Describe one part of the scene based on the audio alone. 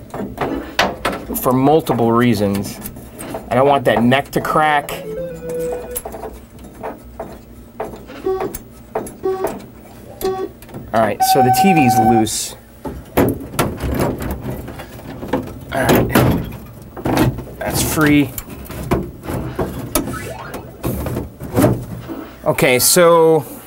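An arcade game plays short electronic beeps and tones nearby.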